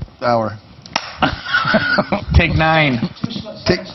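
Men laugh loudly.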